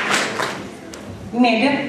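An elderly woman speaks into a microphone.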